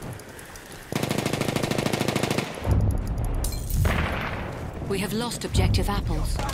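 A machine gun fires in a rapid rattle.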